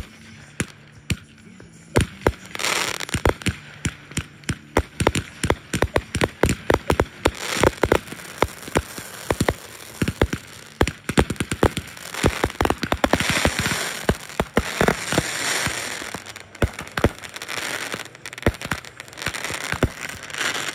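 Fireworks burst with rapid sharp bangs and crackles outdoors.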